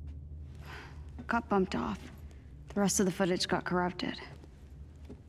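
A young woman answers calmly, heard up close.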